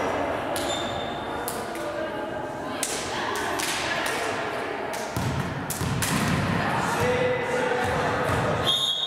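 Teenage girls chatter and call out nearby in a large echoing hall.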